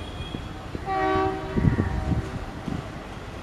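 A train horn sounds briefly.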